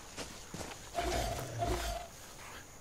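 A wolf growls close by.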